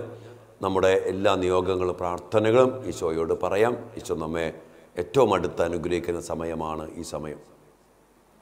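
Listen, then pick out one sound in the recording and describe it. A man sings slowly in a steady chant through a microphone.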